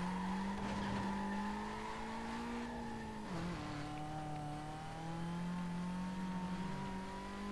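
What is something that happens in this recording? A car engine roars steadily, dropping in pitch as the gear shifts and then climbing again.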